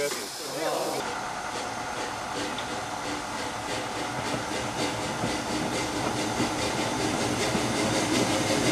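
A steam locomotive puffs rhythmically as it approaches.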